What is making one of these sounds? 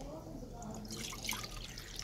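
Liquid pours from a clay jug into a bowl.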